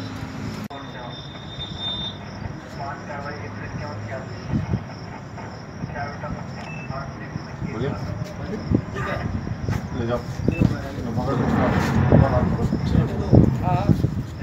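Several men talk nearby, growing louder and busier toward the end.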